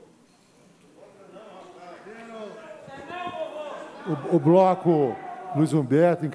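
Several men talk at once in a large hall.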